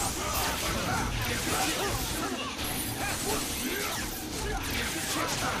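Loud fighting game sound effects whoosh, crackle and boom.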